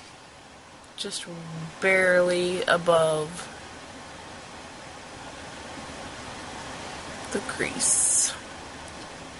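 A young woman speaks casually close to the microphone.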